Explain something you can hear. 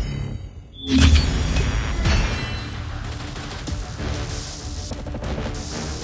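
Triumphant game music swells and plays on.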